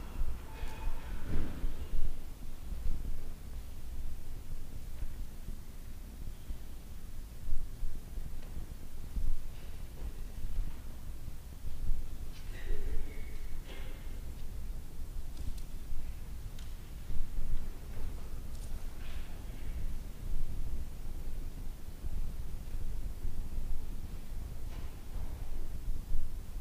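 A man speaks slowly and calmly in a large echoing hall, heard from a distance.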